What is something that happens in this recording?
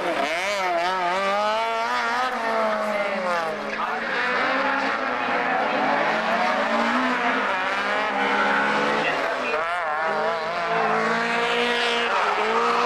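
A racing car engine revs hard, rising and falling in pitch.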